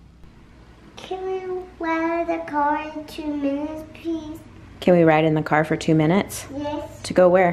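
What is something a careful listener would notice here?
A young girl speaks in a high voice close by.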